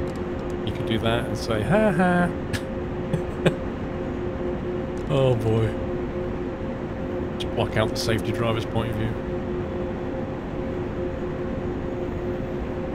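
An electric train's motor hums steadily.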